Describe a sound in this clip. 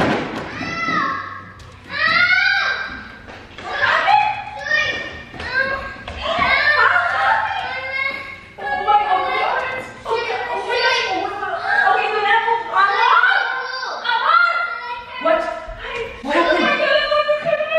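A young woman shouts in alarm close by.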